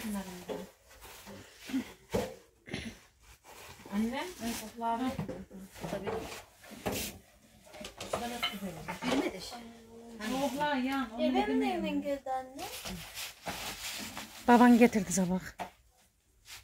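Women talk nearby in a casual way.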